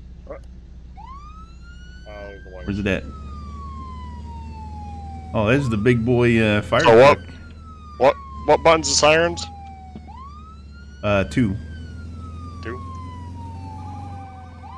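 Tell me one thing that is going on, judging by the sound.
A siren wails in rising and falling sweeps.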